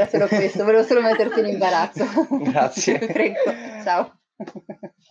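A woman laughs heartily over an online call.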